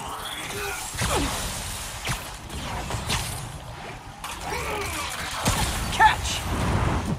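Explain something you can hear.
Heavy punches and kicks land with dull thuds.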